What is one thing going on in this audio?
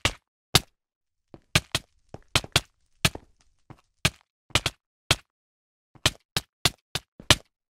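Sword hits land in quick, sharp thumps again and again.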